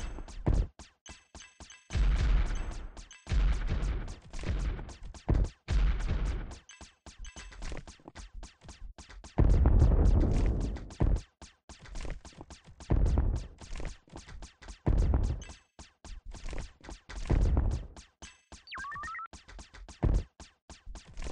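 Rocks explode with deep booming bursts.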